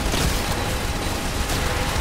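A video game explosion booms.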